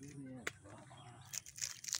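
A hand brushes and rustles against a plant's stiff buds.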